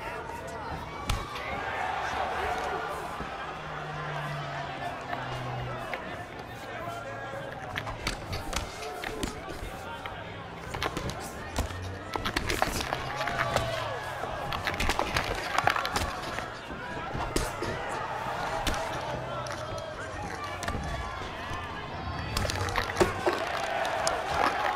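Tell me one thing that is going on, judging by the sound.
Punches thud against bodies in quick bursts.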